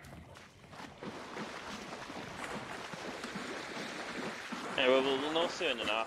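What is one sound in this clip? Footsteps splash and wade through shallow water.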